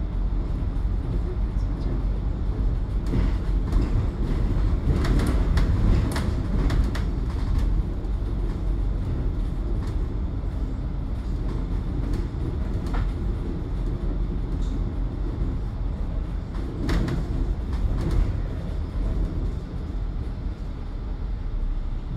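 A bus engine rumbles steadily while driving along a city street.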